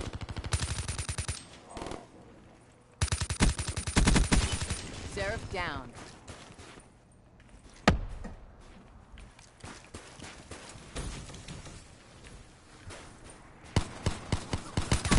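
Rapid gunfire rattles in sharp bursts.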